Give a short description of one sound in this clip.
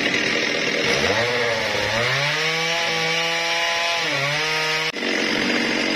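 A chainsaw revs up with a rising whine, holds high, then drops.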